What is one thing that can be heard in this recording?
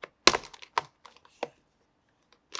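A plastic lid clicks open.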